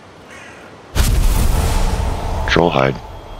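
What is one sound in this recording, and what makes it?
A huge creature bursts apart with a loud rumbling explosion.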